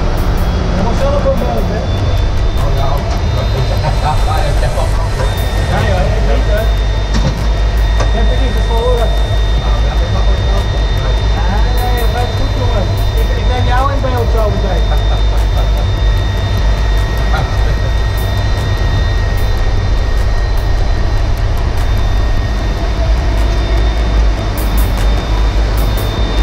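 The jet engines of an airliner whine steadily.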